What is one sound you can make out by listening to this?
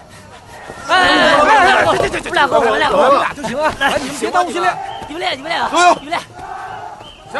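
Several young men shout over one another with alarm.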